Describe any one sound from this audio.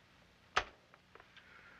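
A click sounds as a telephone receiver is lifted.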